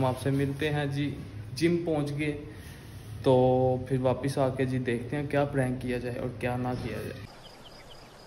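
A young man speaks with animation close to a phone microphone.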